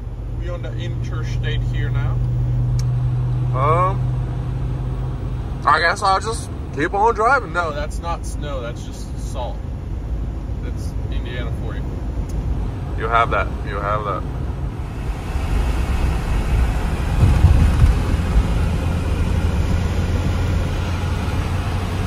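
A car engine hums steadily with tyres rumbling on the road.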